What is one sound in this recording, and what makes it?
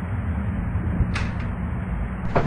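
A wooden drawer rattles but stays shut.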